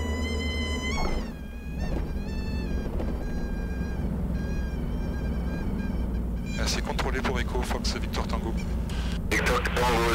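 A small plane's engine drones steadily as it taxis.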